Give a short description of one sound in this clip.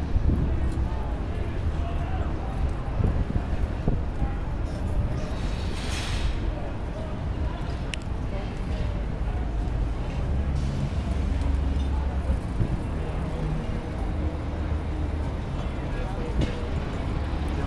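A crowd of men murmurs outdoors.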